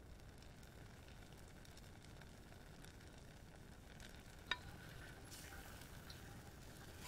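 Sauce bubbles gently in a pan.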